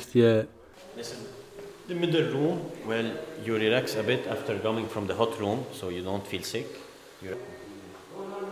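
A man explains calmly close by, his voice echoing in a domed room.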